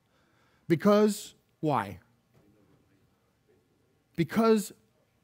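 A man preaches with emphasis through a microphone.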